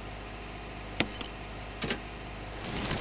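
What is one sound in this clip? A metal switch clicks as it is turned.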